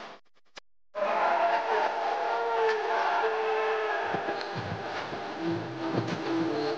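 A crowd cheers loudly in a stadium.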